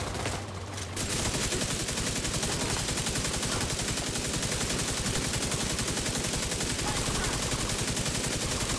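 An automatic rifle fires rapid, nonstop bursts close by.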